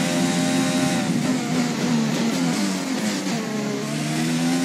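A racing car's engine drops in pitch as it brakes into a corner.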